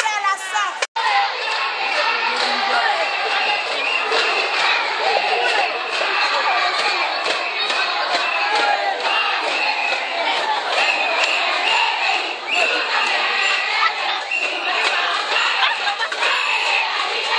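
A large crowd sings and chants outdoors.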